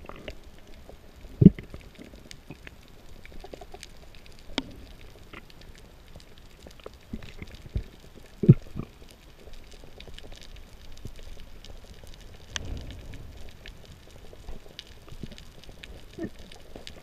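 Water hushes with a muffled underwater sound, broken by faint crackling.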